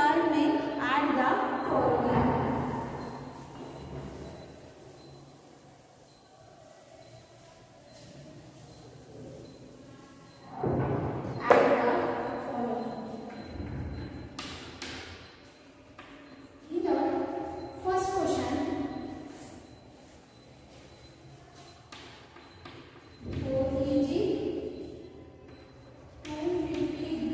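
A young woman speaks clearly to a class.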